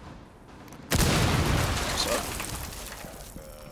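Splintered debris rattles and crumbles down.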